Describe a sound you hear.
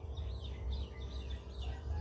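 Squirrels chirp from high up in the open air.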